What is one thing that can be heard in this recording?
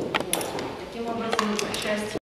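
A young woman speaks calmly to the room.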